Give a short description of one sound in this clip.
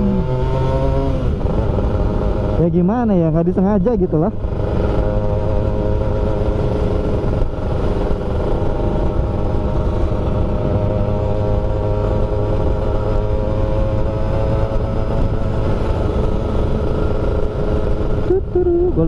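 A scooter engine hums steadily up close while riding.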